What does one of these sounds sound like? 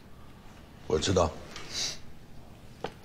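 An older man answers briefly in a low voice.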